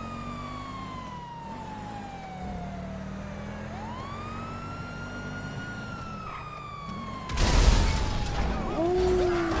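A car engine hums as it drives.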